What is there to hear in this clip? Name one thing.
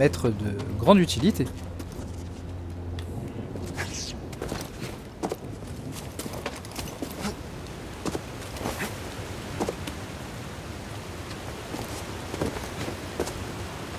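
Footsteps scrape and tap on rock.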